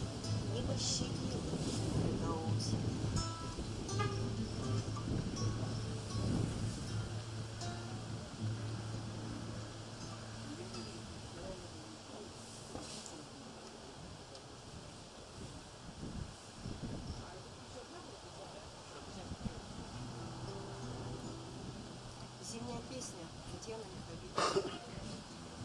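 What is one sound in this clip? A woman sings into a microphone.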